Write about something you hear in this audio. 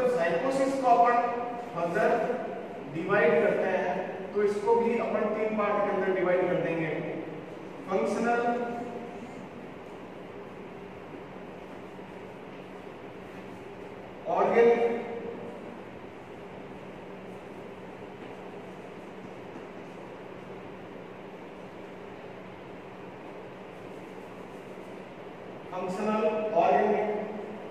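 A man lectures in a raised, clear voice in an echoing room, pausing often.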